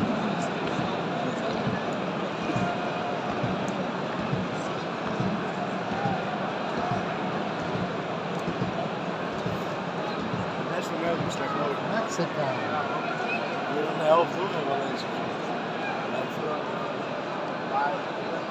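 A large stadium crowd murmurs and chants steadily all around.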